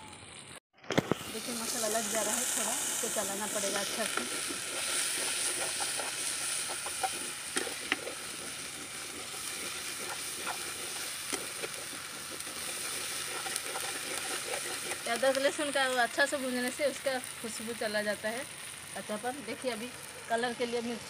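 Food sizzles in a pot over a fire.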